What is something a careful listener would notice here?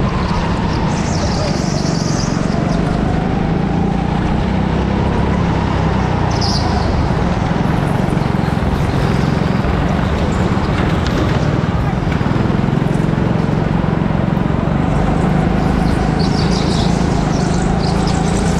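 Tyres squeal on the track.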